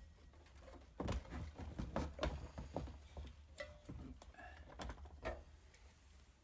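Metal engine parts clink and clatter as they are handled on a hard surface.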